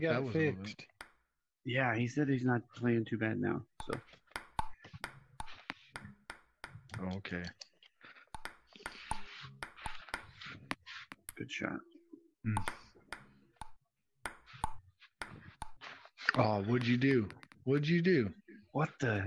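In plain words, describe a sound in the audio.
A table tennis ball clicks back and forth between paddles and a table in a quick rally.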